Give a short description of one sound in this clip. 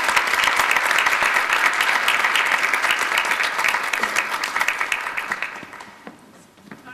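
An audience applauds in a large hall, then the clapping fades.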